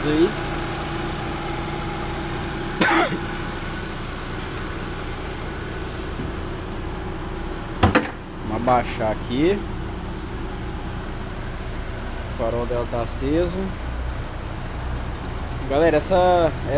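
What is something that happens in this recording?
An engine idles with a steady hum.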